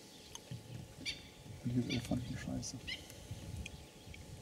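Small birds chirp near the water.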